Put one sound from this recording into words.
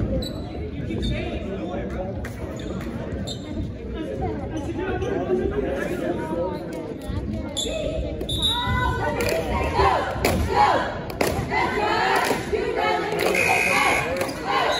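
A crowd of spectators chatters in an echoing gym.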